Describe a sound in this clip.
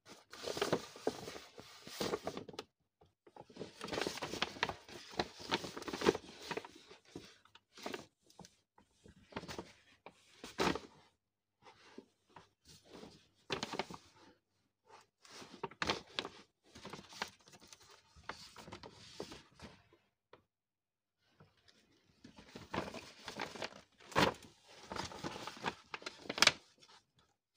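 Paper shopping bags rustle and crinkle as a hand rummages through them.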